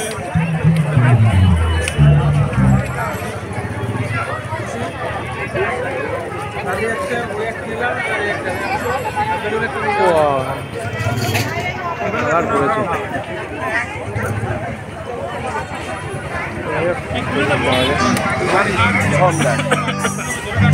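A large crowd chatters loudly outdoors.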